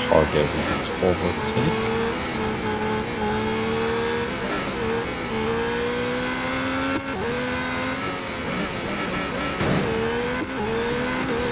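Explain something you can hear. A racing car engine whines loudly, rising in pitch and dropping as the gears shift.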